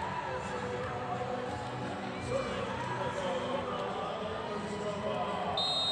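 A volleyball is struck hard with a slap.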